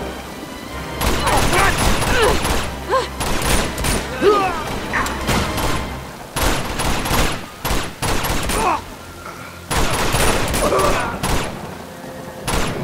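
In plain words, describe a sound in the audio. Pistol shots ring out in rapid bursts.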